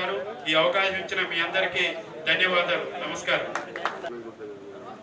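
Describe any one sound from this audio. A middle-aged man speaks loudly into a microphone over a loudspeaker.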